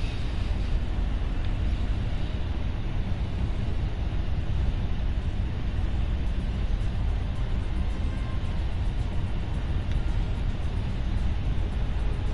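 A spaceship's engine rumbles low and steady.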